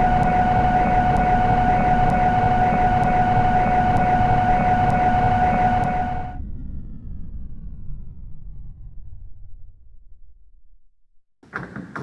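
A train's electric motor whines and rumbles as the train slows to a stop.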